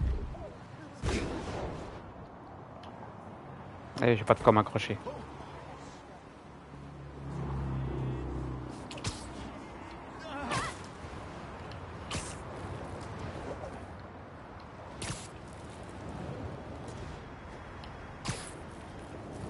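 Sharp web shots snap and whoosh again and again.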